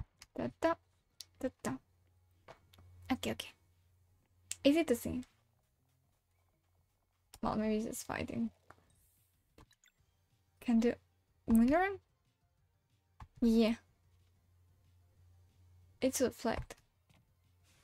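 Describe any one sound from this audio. A young woman talks with animation close to a microphone, in short bursts with pauses.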